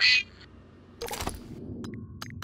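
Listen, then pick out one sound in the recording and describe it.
A game menu opens with a short whoosh.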